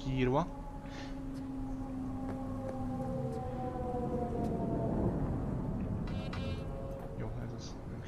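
A car engine hums as a car drives by below.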